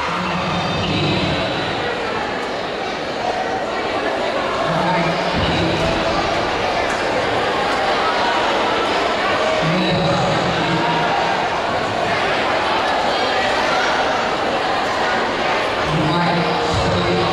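Music with a steady beat plays loudly through loudspeakers in a large echoing hall.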